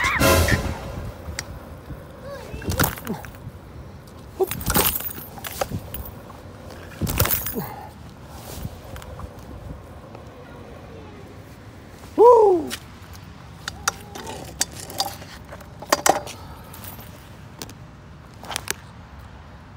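Scooter wheels rattle and clatter over rough pavement.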